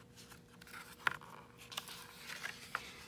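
A page of a book rustles as it is turned.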